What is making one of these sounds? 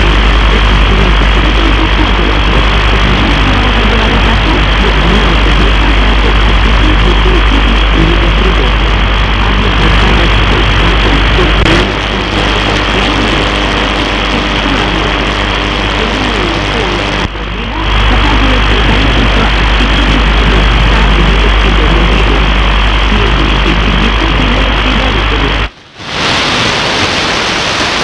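Radio static hisses and crackles steadily from a receiver, with a low hum underneath.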